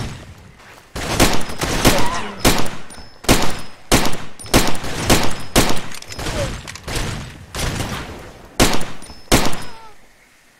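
A pistol fires single loud shots, one after another.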